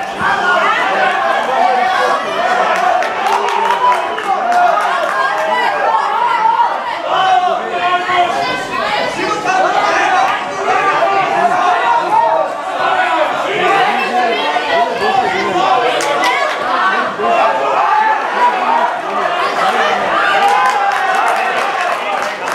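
A crowd shouts and cheers throughout in a large echoing hall.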